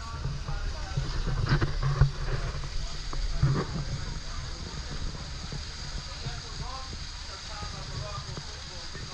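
Water gushes from a pipe and splashes into the sea.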